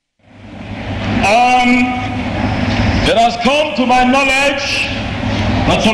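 A man preaches loudly through a microphone in an echoing hall.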